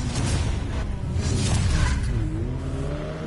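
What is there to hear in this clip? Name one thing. Tyres screech as a car launches.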